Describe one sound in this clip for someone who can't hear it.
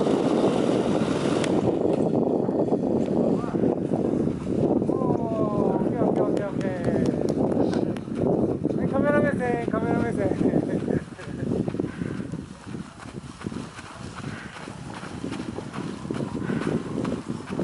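Strong wind rumbles and buffets against the microphone outdoors.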